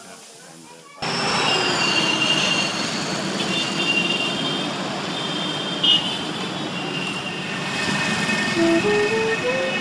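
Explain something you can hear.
Traffic rumbles steadily along a busy road outdoors.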